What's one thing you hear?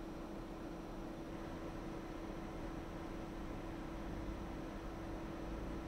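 Computer fans whir with a steady hum.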